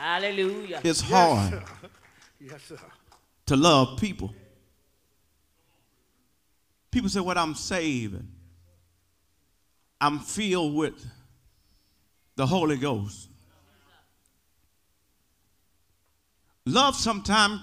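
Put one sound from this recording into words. A man preaches with feeling into a microphone, in short bursts with pauses, echoing in a large hall.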